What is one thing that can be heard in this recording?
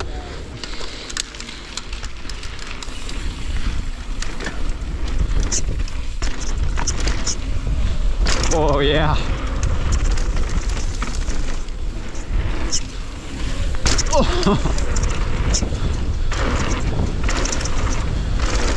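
A bicycle's frame and chain rattle over bumps.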